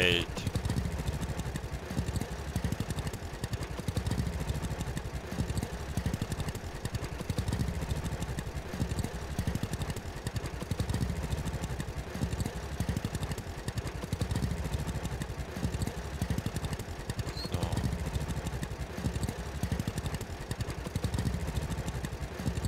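An old tractor engine chugs steadily at low speed.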